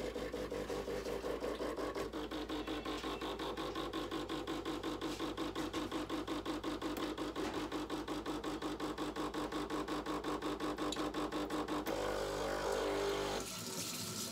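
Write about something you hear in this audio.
Liquid trickles into a glass dish.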